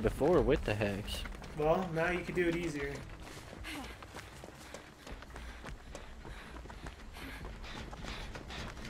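Footsteps run quickly over soft ground.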